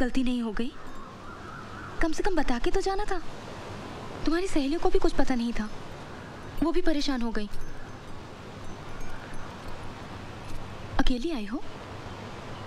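A young woman speaks calmly and softly up close.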